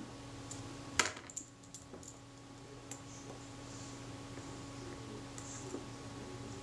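A small metal tool clicks and scrapes against a metal part.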